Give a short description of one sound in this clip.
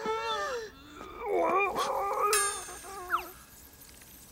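A young woman shouts in alarm.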